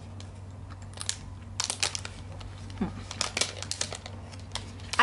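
A foil wrapper crinkles.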